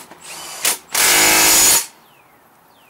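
A cordless drill whirs in a short burst.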